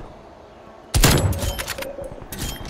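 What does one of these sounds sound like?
A rifle fires a single loud shot that rings out.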